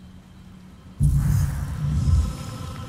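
A laser beam blasts with a loud, harsh roar.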